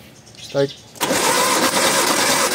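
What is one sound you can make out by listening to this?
An engine cranks over loudly.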